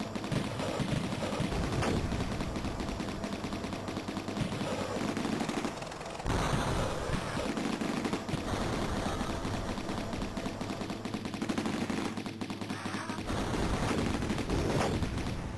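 Video game gunfire crackles rapidly.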